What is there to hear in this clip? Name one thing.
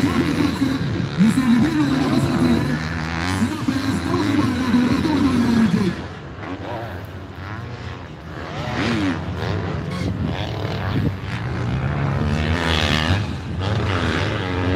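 Motocross bike engines rev and wail in the distance.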